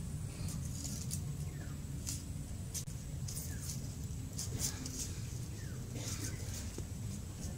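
A knife chops vegetables with sharp, quick taps.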